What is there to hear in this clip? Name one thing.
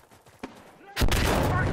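A rifle fires loudly in rapid shots.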